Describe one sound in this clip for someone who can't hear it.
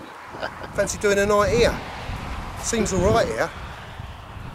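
A middle-aged man talks with animation close by, outdoors.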